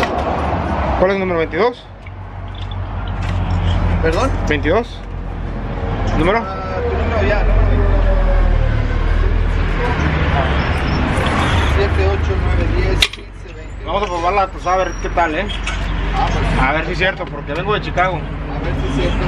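A man talks casually close by, outdoors.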